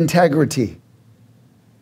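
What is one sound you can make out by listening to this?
A man speaks briefly through a microphone, then falls silent.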